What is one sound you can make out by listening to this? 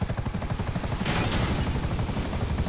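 A helicopter crashes onto rocky ground with a loud rush.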